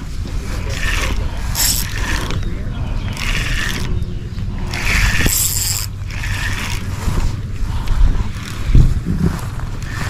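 Wind rumbles across an open microphone outdoors.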